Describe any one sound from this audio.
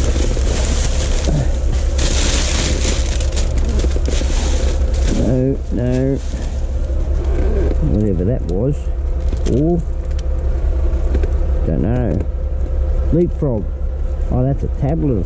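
Plastic bags rustle and crinkle as they are rummaged through.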